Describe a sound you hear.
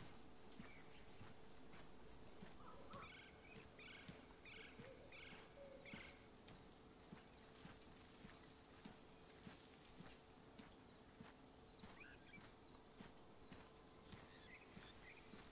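Footsteps thud steadily on grass and then on hollow wooden boards.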